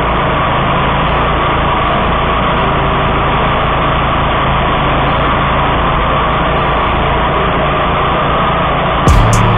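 A lawn mower engine roars steadily up close.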